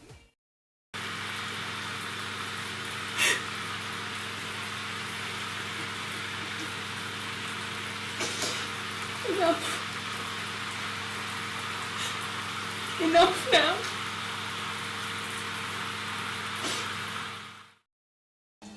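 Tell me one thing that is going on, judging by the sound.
A young woman sobs and whimpers.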